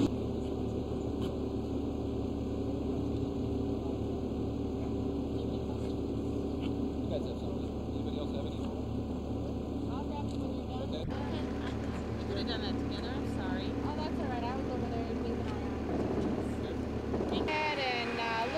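A road roller's engine rumbles steadily outdoors.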